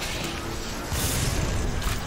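Electricity crackles and zaps in short bursts.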